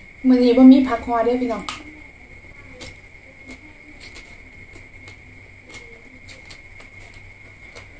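A young woman chews and slurps food close by.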